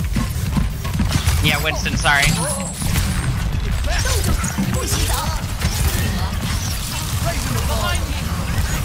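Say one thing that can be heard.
Gunfire and energy weapons blast rapidly in a game battle.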